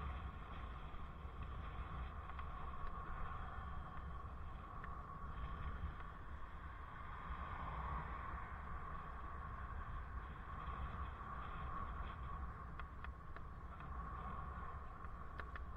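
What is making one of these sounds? Tyres rumble over the road surface.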